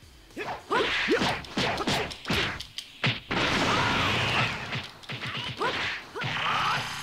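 Punches and kicks thud in rapid bursts.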